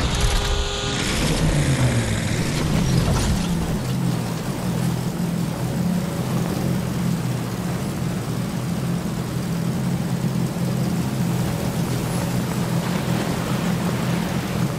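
Thrusters roar with a steady low hum.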